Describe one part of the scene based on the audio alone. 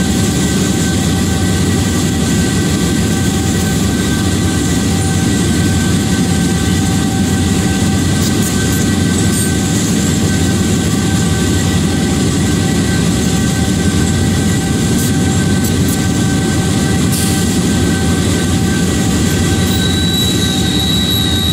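A diesel locomotive engine rumbles steadily at speed.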